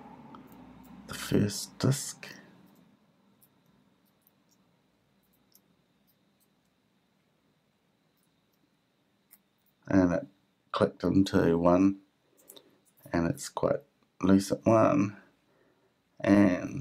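Small clicks come from a combination lock's dials being turned by hand.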